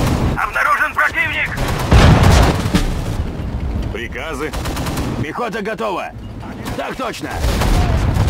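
Explosions boom in quick succession.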